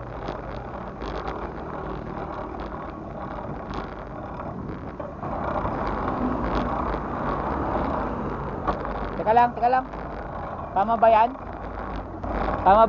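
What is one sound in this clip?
Bicycle tyres hum steadily on a paved road.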